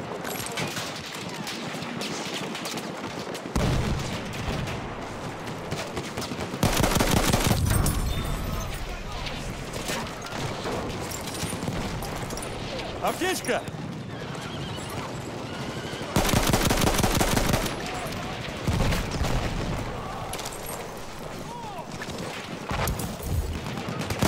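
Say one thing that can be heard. Distant battle noise of gunfire and blasts rumbles on.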